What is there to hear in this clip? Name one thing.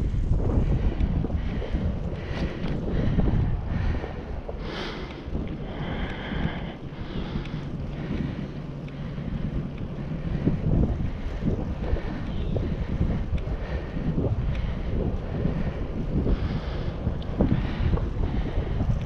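Wind gusts past a moving bicycle.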